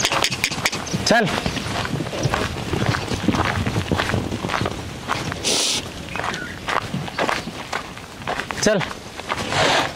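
Horses snort and whinny.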